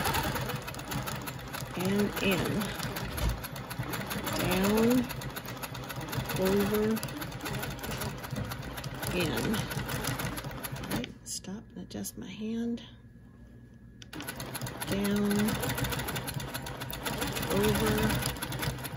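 A sewing machine hums and stitches rapidly.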